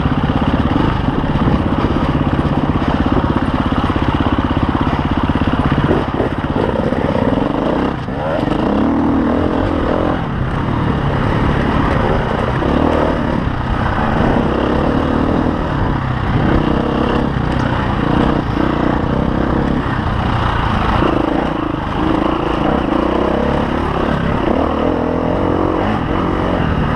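A dirt bike engine revs and roars up close, rising and falling with the throttle.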